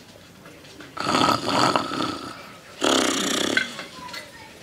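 A man snores loudly.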